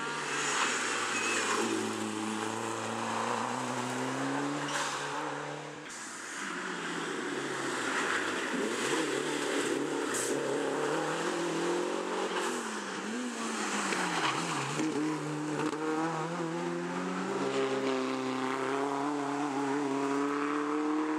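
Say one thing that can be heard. Rally car engines roar loudly, revving and changing pitch as they pass close by one after another.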